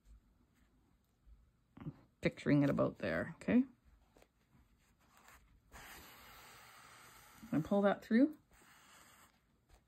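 Hands rub and squeeze soft knitted yarn.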